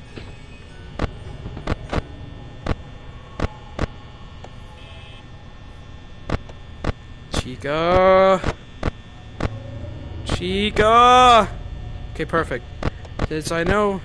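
Buttons click sharply, again and again.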